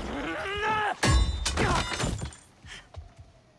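A young man falls heavily to the floor.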